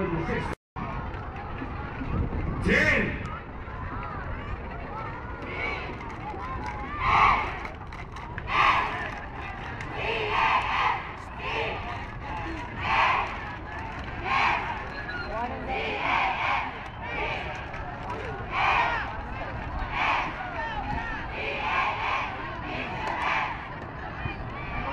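A large crowd murmurs and cheers in the open air.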